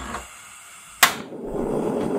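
A gas burner clicks and ignites.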